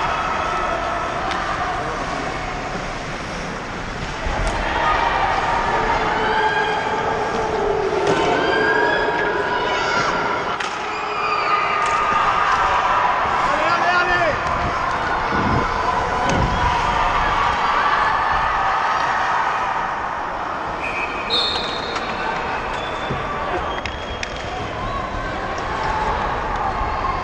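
Ice skates scrape and carve across the ice, close by.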